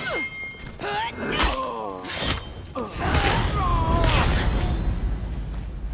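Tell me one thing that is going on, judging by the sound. Heavy weapons clash and strike in a close fight.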